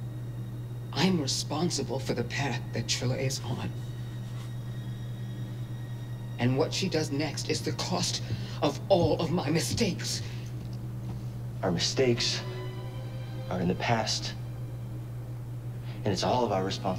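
A young woman speaks calmly and earnestly, close by.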